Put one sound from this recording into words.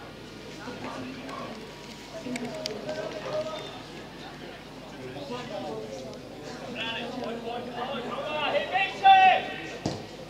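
Spectators chatter and call out nearby, outdoors.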